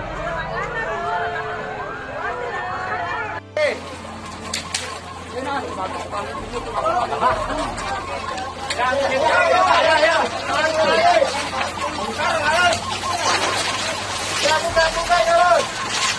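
Fire crackles loudly.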